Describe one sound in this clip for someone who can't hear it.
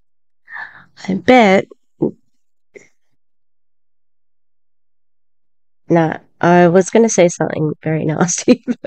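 An elderly woman speaks with animation into a close microphone.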